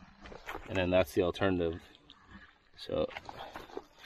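Boots squelch in wet mud.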